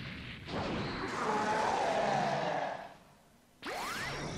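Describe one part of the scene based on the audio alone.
A giant beast lets out a deep, ferocious roar.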